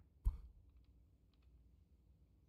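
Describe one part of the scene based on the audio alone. Snooker balls click softly against each other.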